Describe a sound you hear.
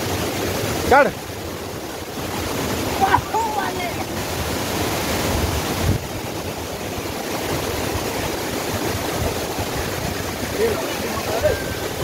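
A boy shouts over the rushing water.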